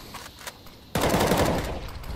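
A grenade bursts with a loud bang.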